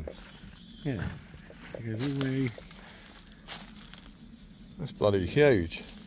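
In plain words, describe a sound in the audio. Leaves and twigs rustle and crunch underfoot.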